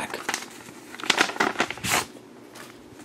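Paper rustles as an envelope is handled.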